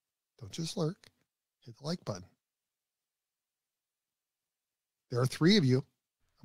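A middle-aged man speaks with animation into a close microphone, in short bursts with pauses.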